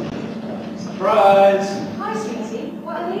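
A man speaks clearly on stage, heard from a distance.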